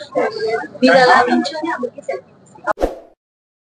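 A young woman speaks into microphones with animation.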